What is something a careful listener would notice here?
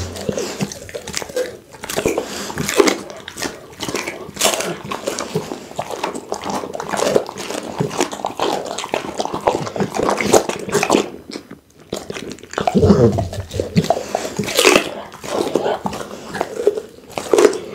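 A dog chews raw meat with wet, smacking sounds close to a microphone.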